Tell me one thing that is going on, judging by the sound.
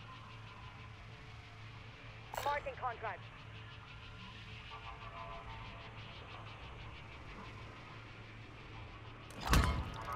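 A swirling magical portal hums and crackles steadily.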